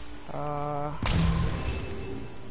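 An axe swings and strikes with a heavy whoosh.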